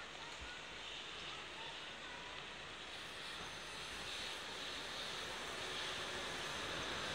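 A high-speed train glides into a station with a rising rushing hiss.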